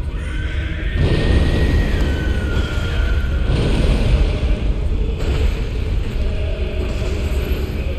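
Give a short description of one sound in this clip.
A beast growls and roars.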